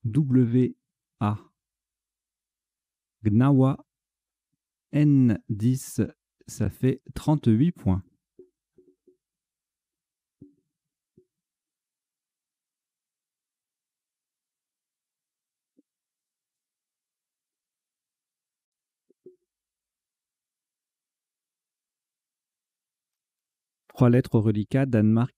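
A man talks calmly into a microphone, close by, in short bursts with long pauses.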